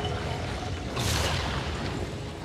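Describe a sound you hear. A blade swings with a sharp, crackling burst of energy.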